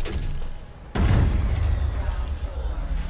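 A grenade explodes with a loud boom and a rumble.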